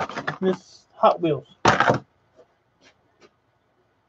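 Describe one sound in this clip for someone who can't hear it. A small plastic object is set down on a wooden bench with a knock.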